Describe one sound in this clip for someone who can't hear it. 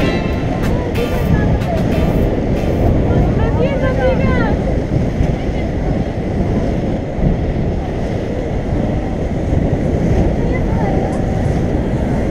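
Wind rushes loudly past the microphone throughout.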